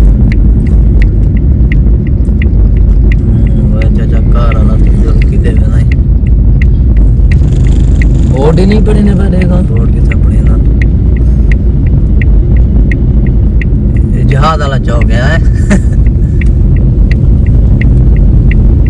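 A car engine hums steadily with tyres rumbling on the road.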